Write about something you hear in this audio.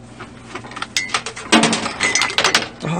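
A coffee machine whirs and hums as it dispenses.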